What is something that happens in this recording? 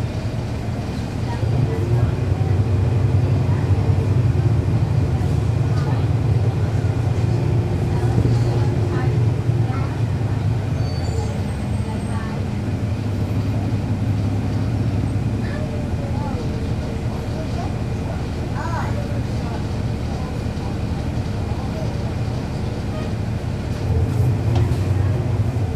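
A bus engine idles steadily close by, rumbling low.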